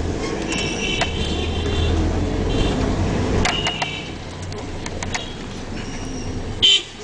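Motorbike horns beep in short bursts.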